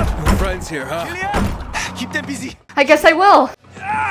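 A man bangs on a wooden door.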